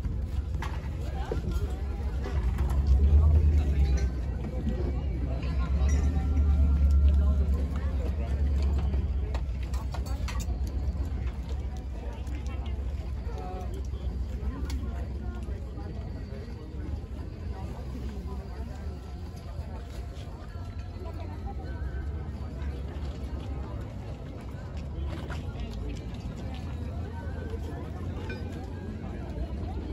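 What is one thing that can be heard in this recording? A crowd of men and women murmurs and chats nearby outdoors.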